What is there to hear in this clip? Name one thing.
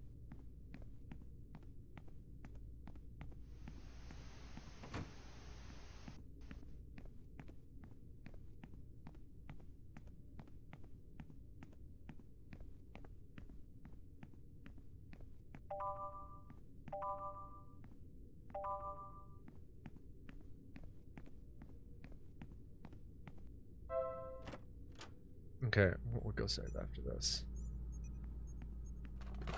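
Footsteps tap along at a steady walking pace.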